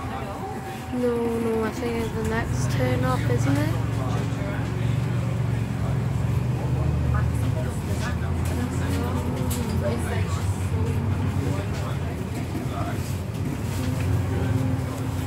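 A bus rattles and creaks as it drives along.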